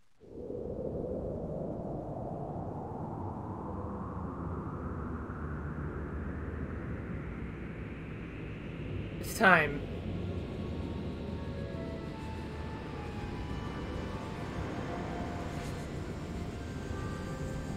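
A deep rushing roar of swirling energy surges steadily.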